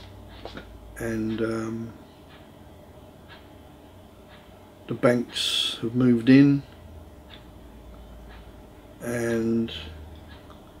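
An elderly man speaks calmly and close by, in short bursts with pauses.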